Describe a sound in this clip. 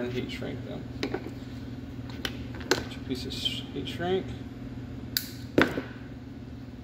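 Plastic parts click and knock as wiring is handled.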